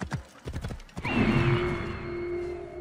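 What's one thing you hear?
An eagle screeches.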